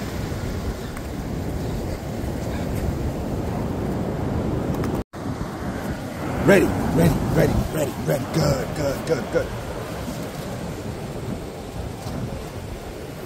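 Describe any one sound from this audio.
Small waves wash steadily onto a beach.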